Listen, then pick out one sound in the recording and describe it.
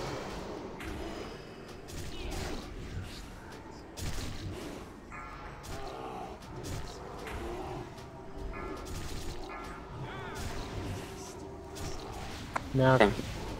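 Magic spells whoosh and crackle in a noisy battle.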